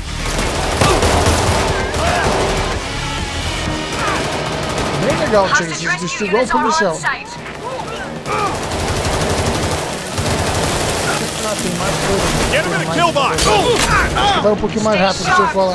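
Pistol shots fire in rapid bursts.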